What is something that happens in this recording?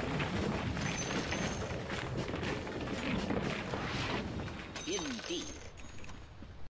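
Fantasy battle sound effects crackle and whoosh as spells are cast.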